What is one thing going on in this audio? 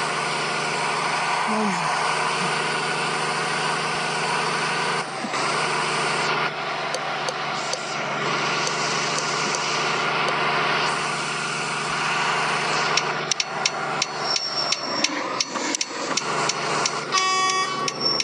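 A truck engine hums steadily while driving on a highway.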